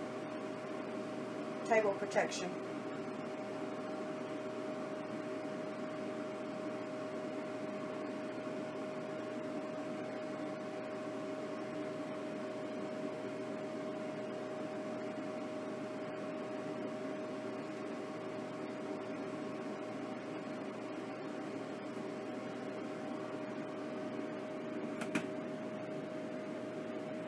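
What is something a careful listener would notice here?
A food dehydrator fan hums steadily.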